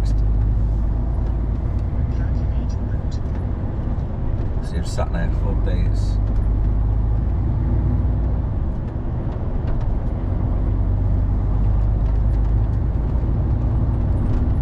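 A heavy vehicle's engine rumbles steadily from close by.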